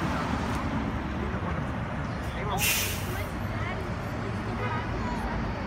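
A city bus engine rumbles nearby.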